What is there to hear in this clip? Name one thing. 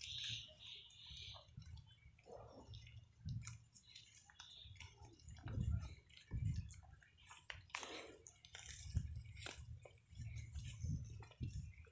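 A buffalo chews noisily close by.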